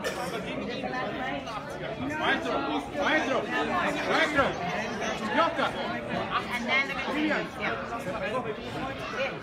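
A crowd of men and women chatter nearby in a large echoing hall.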